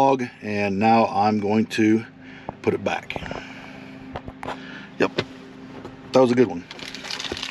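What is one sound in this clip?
A man speaks casually and close by.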